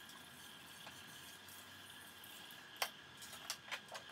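A glass jug clinks against a metal sink.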